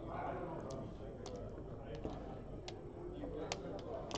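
Dice tumble and clatter onto a game board.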